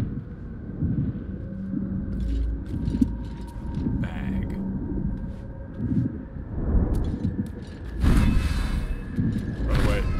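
Footsteps tread softly on soft ground.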